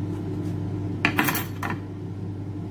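A knife is set down on a plastic cutting board.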